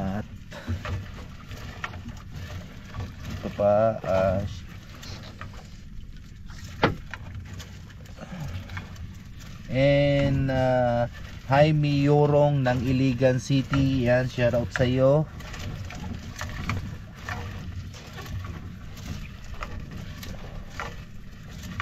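A fishing net rustles and scrapes as it is hauled into a boat.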